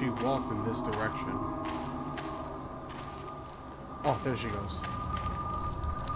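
Footsteps crunch softly on a forest floor.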